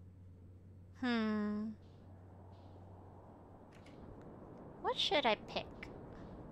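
A young woman speaks playfully into a microphone, close by.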